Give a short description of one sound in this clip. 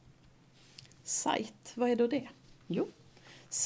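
A middle-aged woman speaks calmly, close to a microphone.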